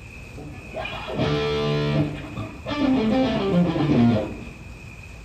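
An electric guitar plays a short loud riff.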